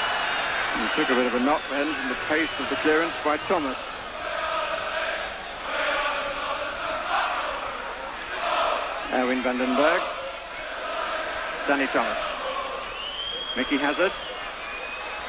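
A large crowd sings and chants in waves.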